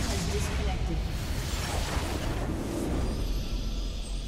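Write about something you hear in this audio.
Video game spell and combat sound effects clash and burst.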